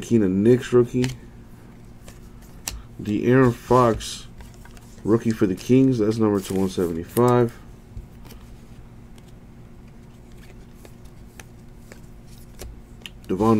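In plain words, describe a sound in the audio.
Trading cards rustle and flick as hands sort through them.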